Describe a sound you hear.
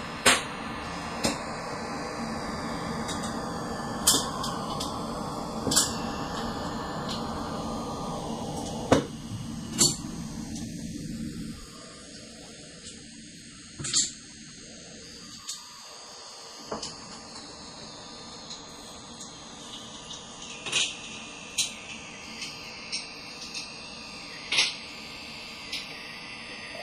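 Mahjong tiles click and clack as they are placed on a table.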